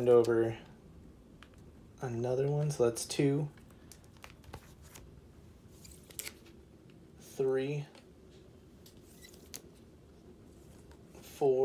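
Thin paper rustles and taps softly as a comic book is handled.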